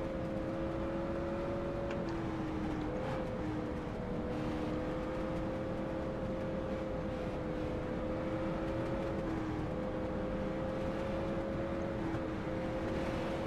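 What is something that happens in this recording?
Other race cars roar close by.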